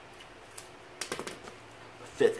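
A pen is set down with a soft tap on cloth.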